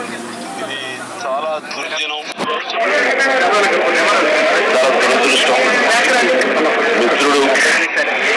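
A crowd of men murmur and talk over one another nearby.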